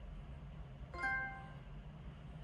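A short electronic chime rings once from a television speaker.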